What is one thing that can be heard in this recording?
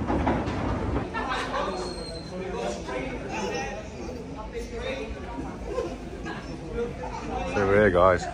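Several people chat in an echoing hall.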